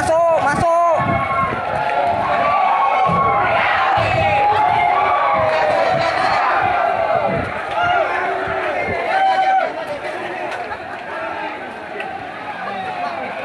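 A crowd of men shout excitedly nearby, outdoors.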